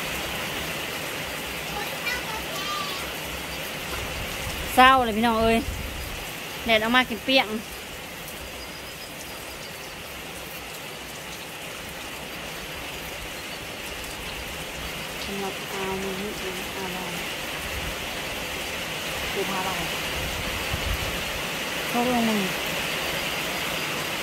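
Wind blows through the trees outdoors.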